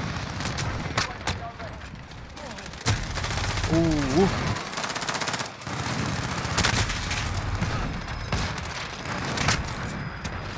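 Single sharp gunshots crack.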